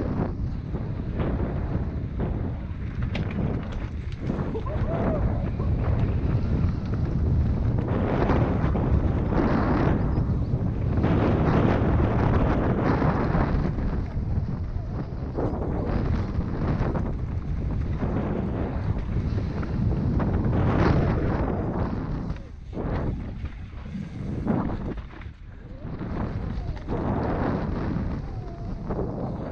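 A bicycle rattles and clatters over rough ground.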